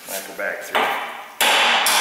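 A hammer strikes metal with sharp blows.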